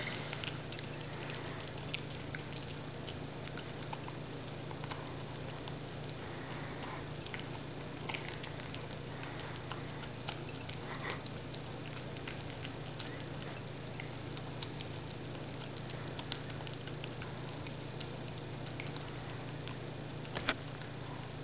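A dog's tongue and nose knock a plate against the floor.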